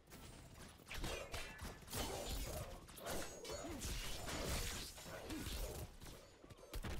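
Metal blades clash and strike in quick bursts of fighting.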